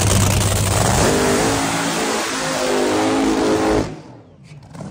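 A dragster roars off the line at full throttle and fades into the distance.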